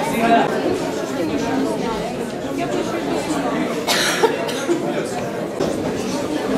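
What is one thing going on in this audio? A crowd of people murmur and chatter.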